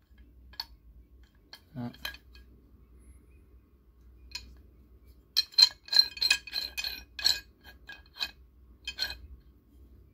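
Metal parts of a pipe wrench click and clatter as they are handled.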